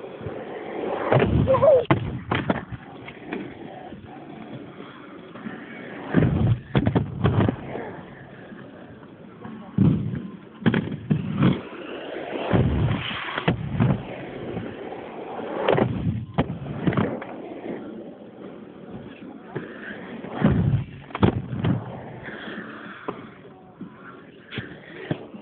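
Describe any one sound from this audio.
Skateboards clack and bang down onto concrete.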